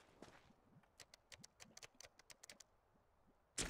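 A bomb keypad beeps quickly as buttons are pressed.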